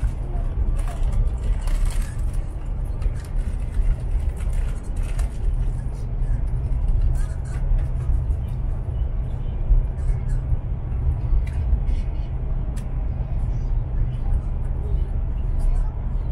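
A train's carriage rattles and clicks.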